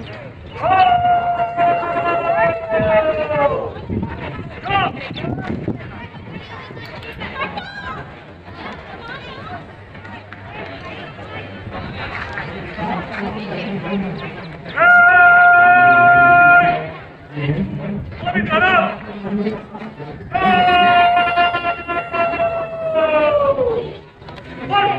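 A man shouts long, drawn-out parade commands outdoors.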